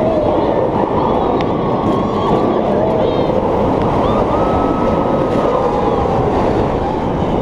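A roller coaster train rumbles and roars along its track.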